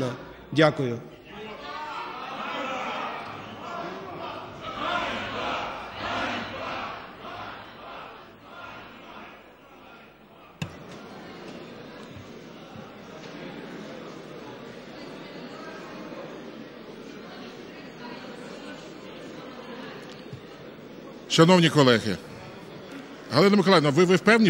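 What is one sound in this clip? A crowd of people murmurs and talks in a large echoing hall.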